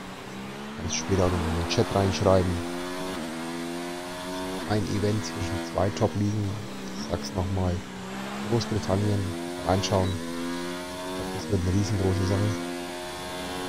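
A racing car engine pops and crackles sharply as the driver lets off the throttle.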